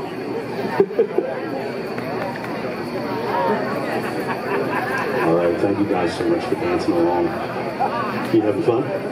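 A live rock band plays outdoors with electric guitars, bass and drums.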